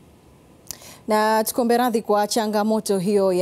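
A young woman speaks calmly and clearly, like a newsreader.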